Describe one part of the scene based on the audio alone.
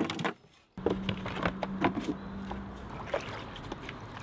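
A bucket dips into water and splashes.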